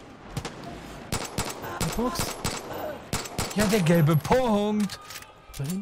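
A pistol fires sharp shots in quick bursts.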